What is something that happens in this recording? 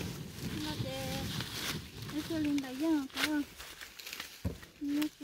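Dry corn leaves rustle and crackle close by.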